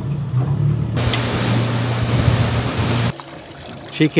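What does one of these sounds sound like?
Water sprays and hisses against a moving boat.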